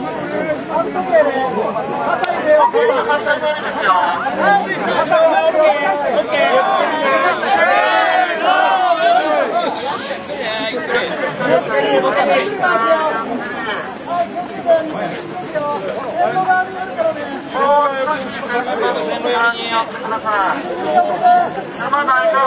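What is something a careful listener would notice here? A crowd of men chants loudly and rhythmically close by, outdoors.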